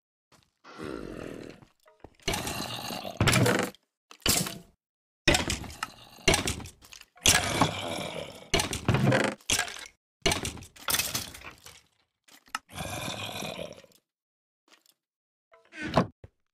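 A wooden chest creaks open and thuds shut several times.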